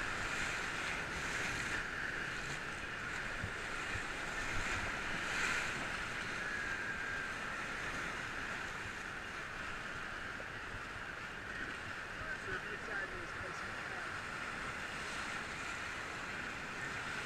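Whitewater rapids roar and churn loudly close by.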